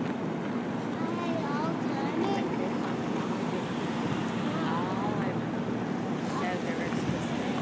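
A small group of adults talk quietly nearby outdoors.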